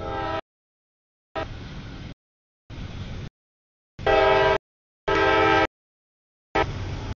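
A train rumbles and clatters past on the tracks.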